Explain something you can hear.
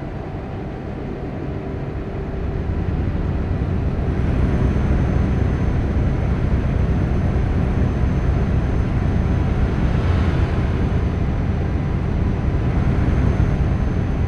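A truck engine rumbles steadily as it drives along a highway.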